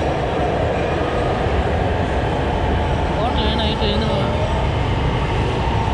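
An escalator hums steadily.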